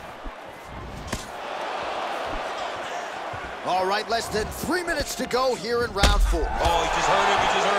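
Kicks and punches thud against a body.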